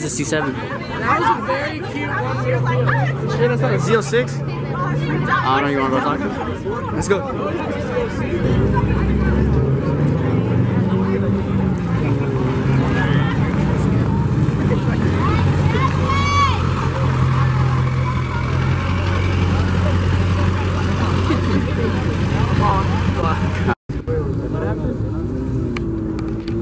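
A crowd of people talks and shouts nearby outdoors.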